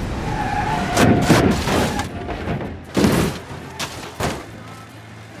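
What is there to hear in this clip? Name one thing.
A car crashes and rolls over with loud metal bangs.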